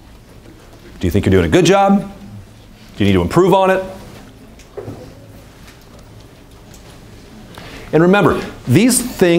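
A man speaks calmly through a loudspeaker in a large room.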